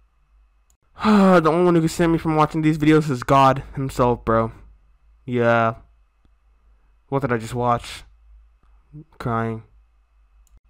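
A young man speaks with animation, close into a microphone.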